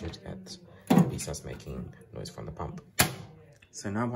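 A plastic flap clicks shut.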